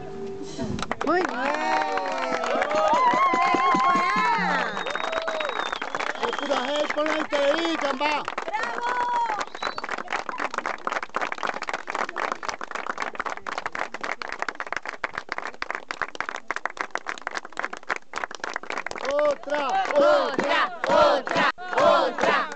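A young man strums an acoustic guitar.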